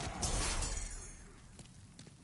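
A loud whooshing burst rushes past and fades.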